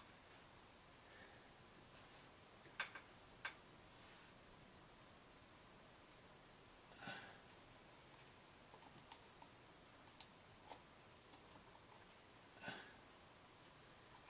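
A plastic fork taps and scrapes on wood.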